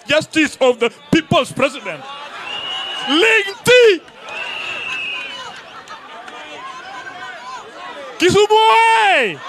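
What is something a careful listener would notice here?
A man shouts energetically into a microphone over loudspeakers.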